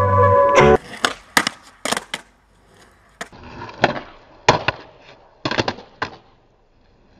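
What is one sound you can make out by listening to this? Skateboard wheels roll over concrete.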